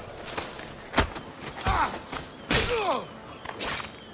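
A blade stabs into a body with a sharp thud.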